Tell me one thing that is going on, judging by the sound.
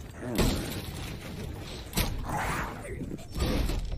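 A spiked mace swings and strikes with a heavy thud.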